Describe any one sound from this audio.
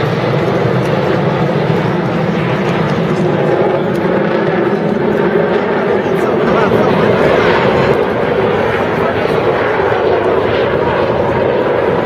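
Jet engines roar loudly overhead.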